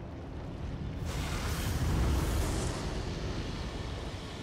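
Wind blows strongly outdoors.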